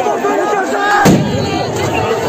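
A sharp bang rings out close by.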